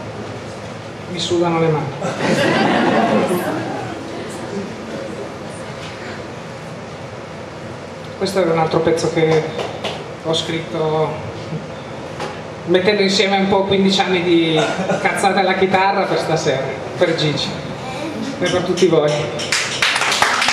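A middle-aged man sings into a microphone.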